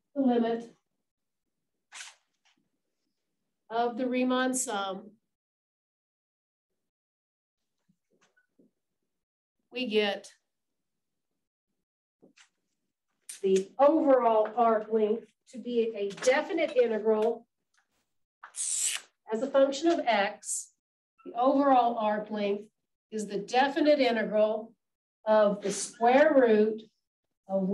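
A woman lectures calmly, heard close through a microphone, with pauses between phrases.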